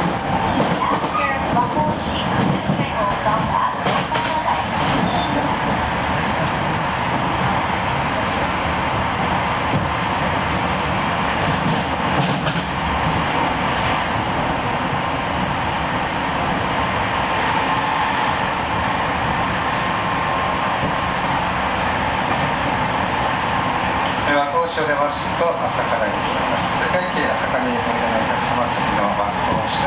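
A train rumbles and rattles steadily along the tracks, heard from inside a carriage.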